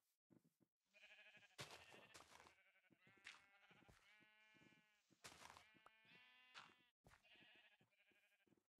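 Sheep bleat nearby.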